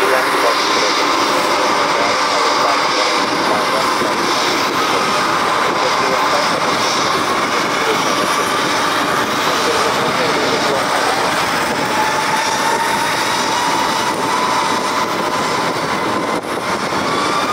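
A jet airliner's engines roar loudly as it taxis past.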